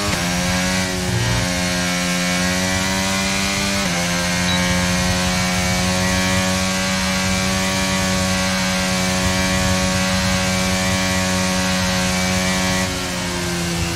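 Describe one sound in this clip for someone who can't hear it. A racing car engine roars at high revs, with sudden gear shifts.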